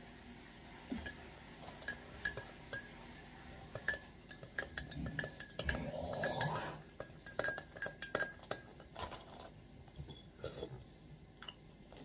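Cutlery clinks against a container.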